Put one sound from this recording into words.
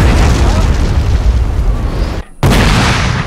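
Musket volleys crackle and boom in rapid bursts.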